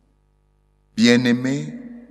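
A man chants through a microphone.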